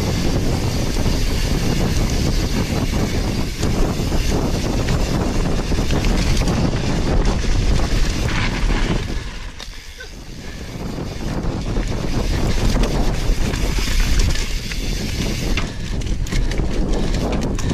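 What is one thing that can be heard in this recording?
Wind rushes loudly past a fast-moving bicycle.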